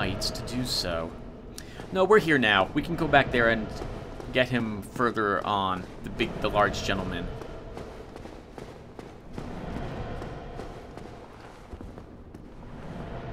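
Armoured footsteps clank on stone as a knight runs.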